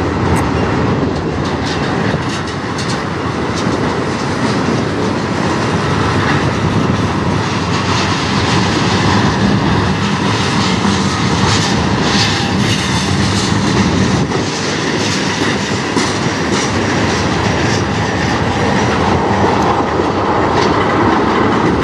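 Train wheels clatter and squeal on the rails.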